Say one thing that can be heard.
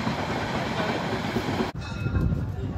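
A train rumbles past nearby.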